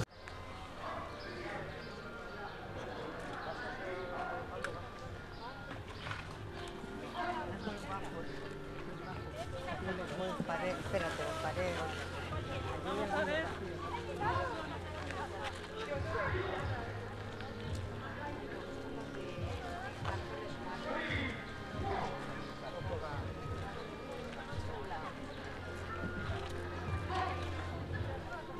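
Men and women chatter quietly in the background outdoors.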